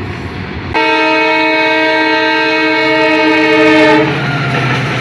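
A diesel locomotive sounds a loud, steady horn.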